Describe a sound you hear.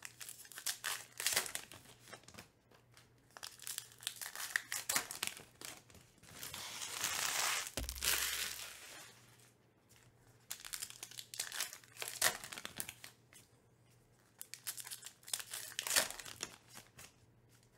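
Foil wrappers crinkle and rustle in hands.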